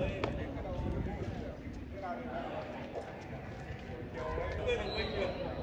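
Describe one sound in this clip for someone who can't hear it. Young men talk and call out close by, outdoors.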